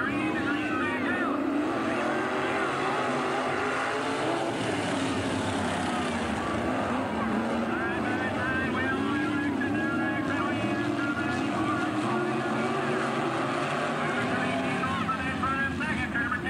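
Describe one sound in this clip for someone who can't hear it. Race car engines roar loudly as cars speed past.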